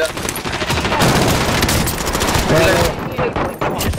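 A rifle fires a rapid burst of shots close by.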